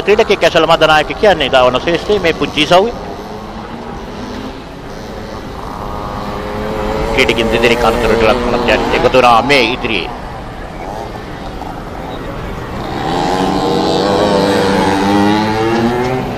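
Small dirt bike engines whine and rev up and down.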